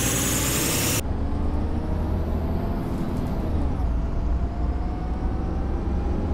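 A bus engine drones steadily while driving.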